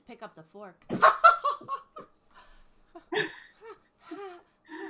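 A woman laughs loudly over an online call.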